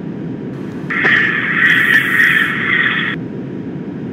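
Another train rushes past with a brief loud roar.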